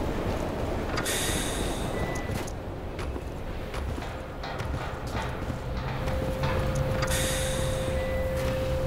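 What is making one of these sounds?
A sliding door hisses open.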